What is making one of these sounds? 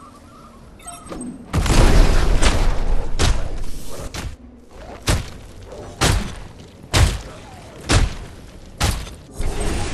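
Heavy blows and fiery blasts thud and crackle in quick bursts.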